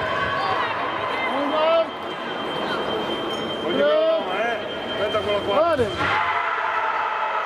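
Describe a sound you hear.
Fencers' shoes squeak sharply on the floor as they move.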